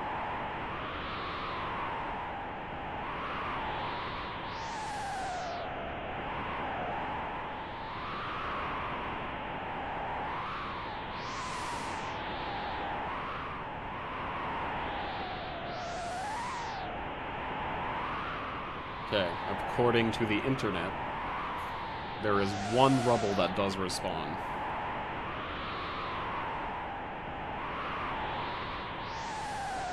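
Soft, wavering game music plays steadily.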